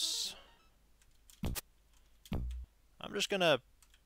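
A short electronic thud sounds as a door shuts.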